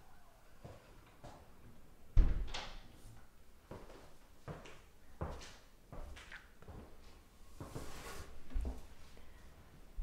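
Footsteps walk across a floor nearby.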